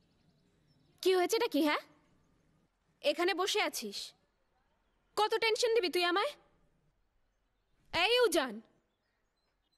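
A young woman shouts angrily in bursts, close by.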